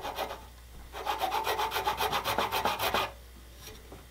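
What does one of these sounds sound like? A file scrapes in fast, even strokes.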